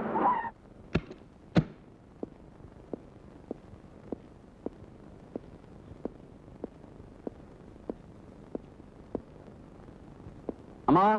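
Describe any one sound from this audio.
Footsteps tap evenly on a hard floor.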